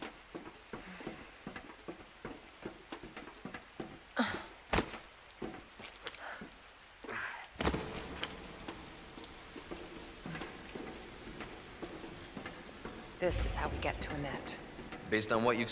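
Footsteps clatter on wooden boards.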